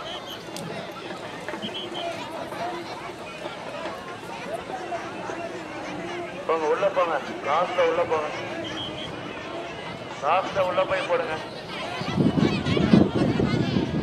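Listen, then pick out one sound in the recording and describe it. Men shout and talk in the distance.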